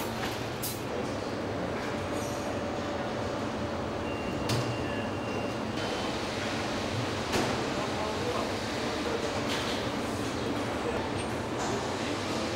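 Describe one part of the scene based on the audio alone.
Machinery hums steadily all around in a large hall.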